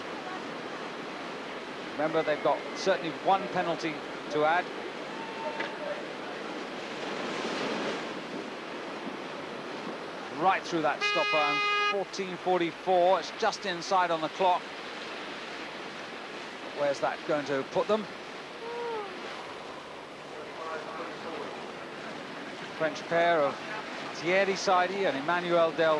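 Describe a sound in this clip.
Whitewater rushes and churns loudly.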